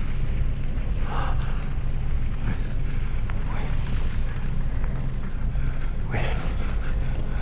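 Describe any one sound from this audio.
A young woman speaks haltingly and breathlessly, close by.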